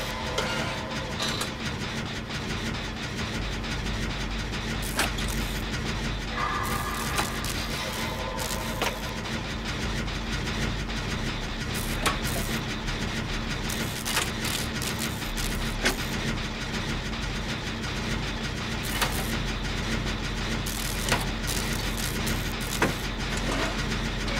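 A generator rattles and whirs steadily.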